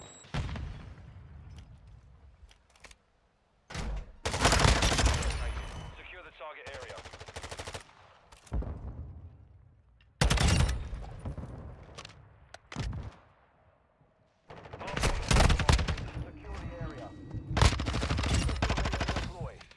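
Rapid gunfire bursts loudly and echoes.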